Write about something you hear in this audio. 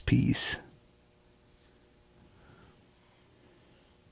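A small plastic piece is set down softly on a cutting mat.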